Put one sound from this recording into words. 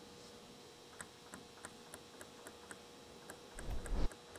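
A table tennis ball clicks quickly back and forth off paddles and a table.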